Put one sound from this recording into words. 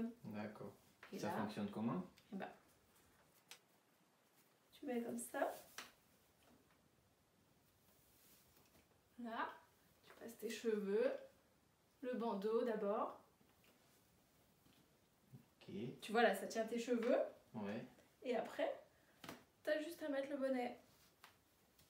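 A young woman speaks calmly and explains, close by, with pauses.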